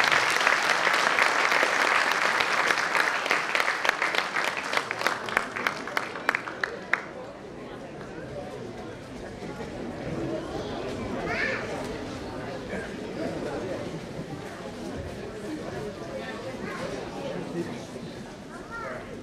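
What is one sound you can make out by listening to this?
Dancers' feet tap and stamp on a wooden stage.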